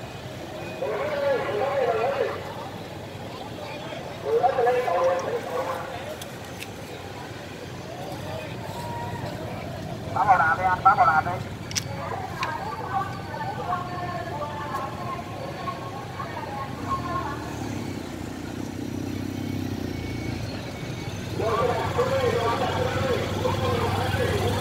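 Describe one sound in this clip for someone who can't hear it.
Motorbike and car engines hum steadily as traffic passes outdoors.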